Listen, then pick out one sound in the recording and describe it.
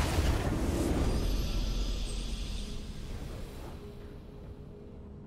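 A triumphant game fanfare rings out and slowly fades.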